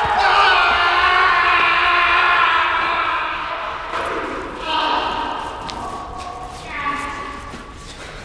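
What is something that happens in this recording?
A young woman screams loudly and shrilly close by.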